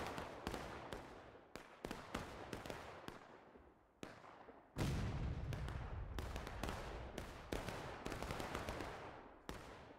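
Musket shots crack repeatedly, some near and some far off, with echoing tails.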